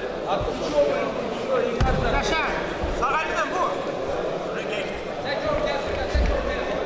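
A crowd of men shouts and cheers loudly nearby.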